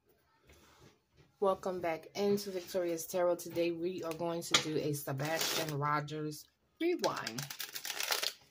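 Playing cards riffle and flutter as a deck is shuffled.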